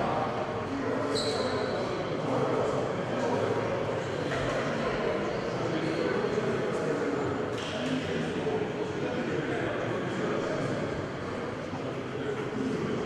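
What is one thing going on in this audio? Many children and adults chatter throughout a large echoing hall.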